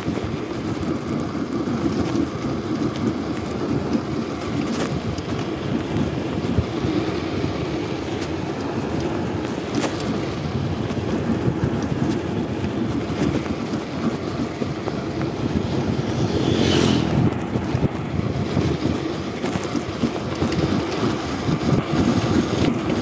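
Wind rumbles against the microphone while riding outdoors.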